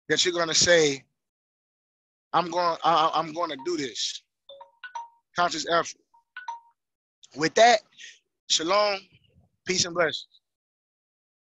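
A man speaks with animation in bursts, close through a headset microphone, with long pauses.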